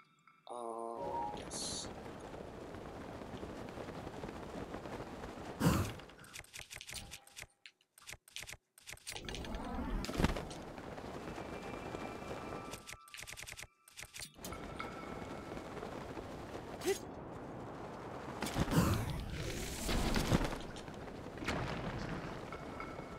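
Wind rushes steadily past during a long glide through the air.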